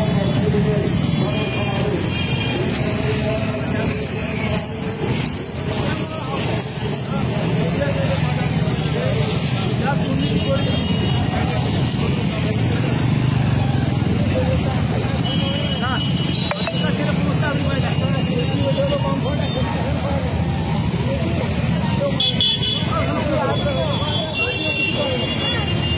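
Many motorcycle and scooter engines hum and rumble as they ride past close by.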